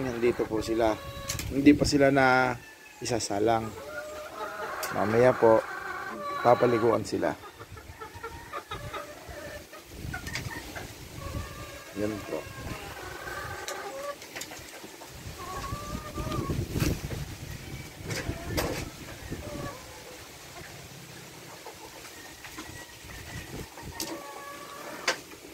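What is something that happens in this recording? Hens cluck and chatter nearby.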